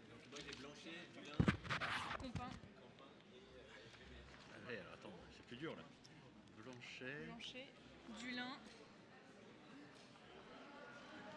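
Men murmur and talk quietly in a large echoing hall.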